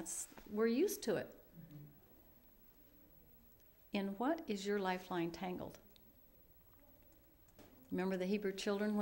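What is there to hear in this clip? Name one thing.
A middle-aged woman speaks calmly and thoughtfully into a nearby microphone, with pauses.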